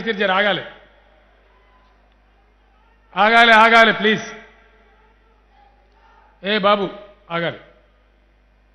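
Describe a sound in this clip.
A man speaks in short, forceful phrases into a microphone.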